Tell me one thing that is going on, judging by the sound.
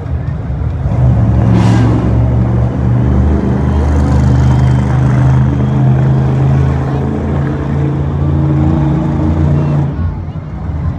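A truck engine revs up hard and roars louder.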